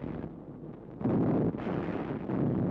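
A man speaks urgently into a radio microphone.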